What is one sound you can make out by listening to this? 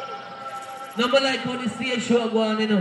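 A young man shouts with energy into a microphone over loudspeakers.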